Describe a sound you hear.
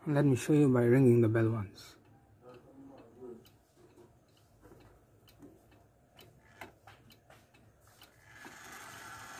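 A wall clock ticks softly and steadily.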